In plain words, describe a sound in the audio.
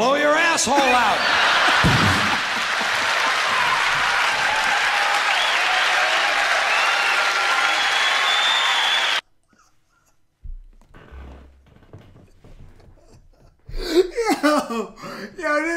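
A young man laughs loudly and wildly close by.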